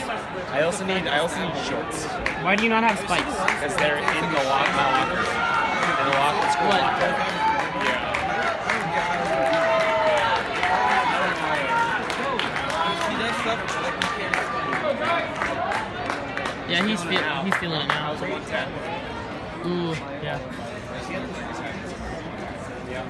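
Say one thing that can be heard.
People in the crowd clap their hands.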